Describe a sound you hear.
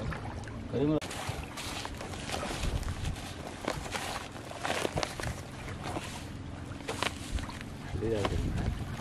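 Hands knead grainy bait, rustling and crinkling a plastic sheet.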